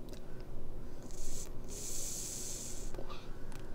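A man blows a breathy hiss through a small call.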